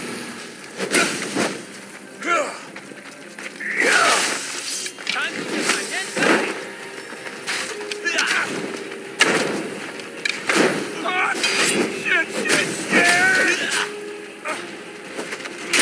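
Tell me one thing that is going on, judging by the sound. Flames whoosh and crackle from a burning blade.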